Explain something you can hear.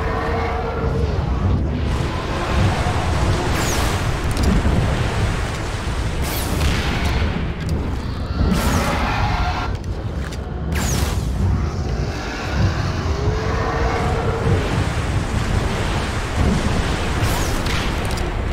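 Fires roar and crackle.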